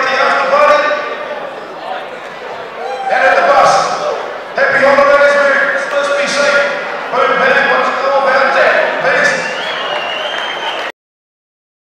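A man announces loudly through a loudspeaker in a large echoing hall.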